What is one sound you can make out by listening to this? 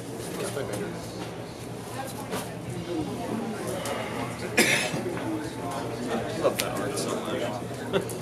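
Players shuffle cards in their hands.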